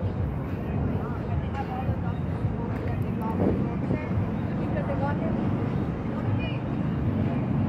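People chatter faintly in the distance.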